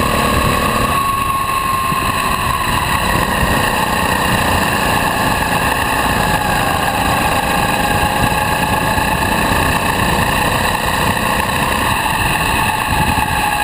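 A go-kart engine whines loudly up close, its pitch rising and falling with speed.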